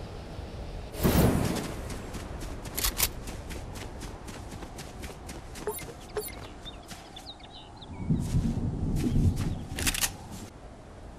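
Footsteps crunch quickly over grass and dirt.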